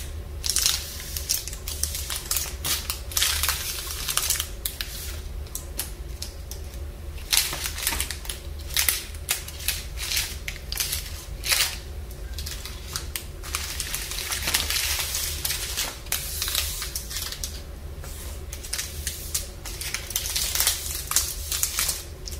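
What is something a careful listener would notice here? Plastic wrappers crinkle and rustle as hands move them, close up.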